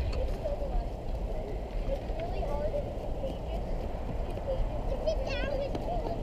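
Hockey skates scrape and glide on ice.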